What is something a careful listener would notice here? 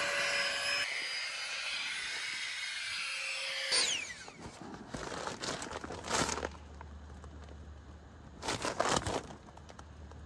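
The nylon fabric of an air mattress rustles and crinkles.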